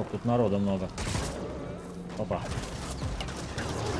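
Game gunfire bursts out in quick volleys.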